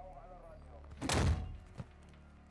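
A rifle fires a single loud shot at close range.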